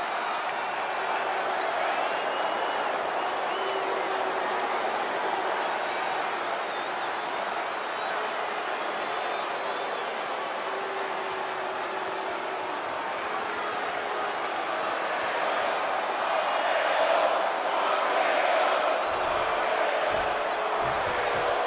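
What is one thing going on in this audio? A large arena crowd cheers and roars steadily.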